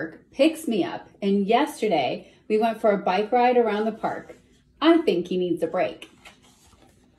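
A woman reads aloud with animation, close by.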